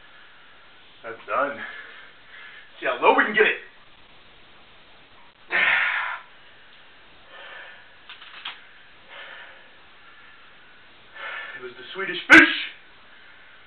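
A man speaks in short, animated bursts close by.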